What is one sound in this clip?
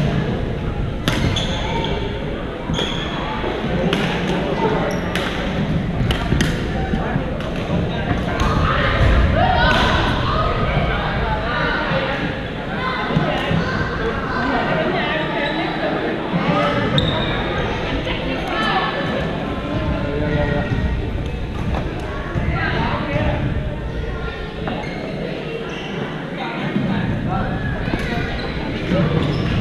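Shoes squeak on the hard floor.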